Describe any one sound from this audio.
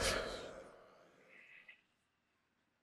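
Loud heavy metal music ends on a final crash that rings out and fades.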